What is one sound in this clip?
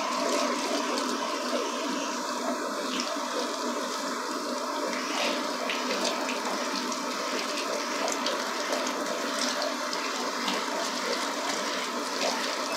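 A handheld shower head sprays water onto wet hair.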